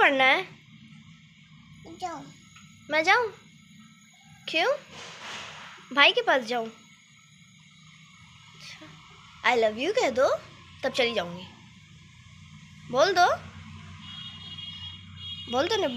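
A toddler speaks and babbles in short high-pitched bursts close by.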